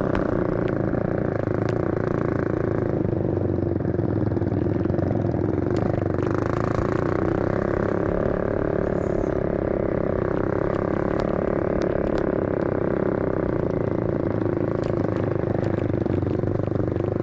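Several motorcycle engines drone steadily close by.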